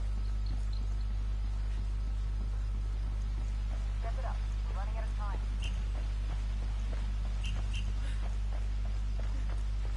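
Footsteps crunch on dirt as someone runs.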